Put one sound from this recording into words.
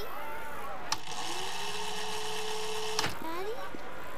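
A tape rewinds with a high, steady whine.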